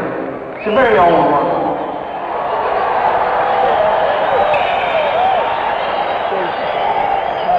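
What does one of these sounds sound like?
A rock band plays loudly live, heard through a rough concert recording.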